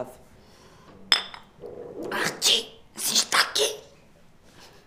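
A woman whimpers and sobs close by.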